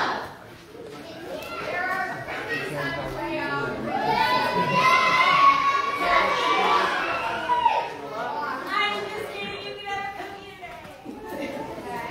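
Children and adults sing together in a large echoing hall.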